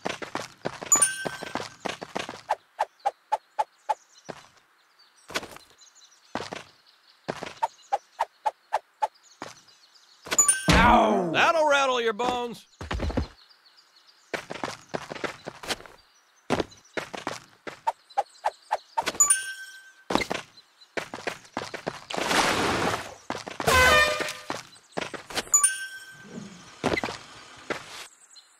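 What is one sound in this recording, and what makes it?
Footsteps patter quickly on wooden planks.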